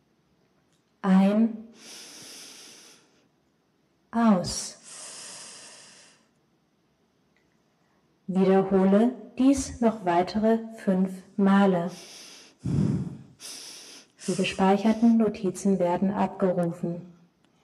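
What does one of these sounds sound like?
A woman speaks calmly into a microphone in an echoing hall.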